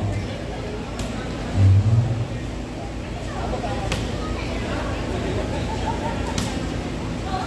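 A volleyball thumps as a player hits it.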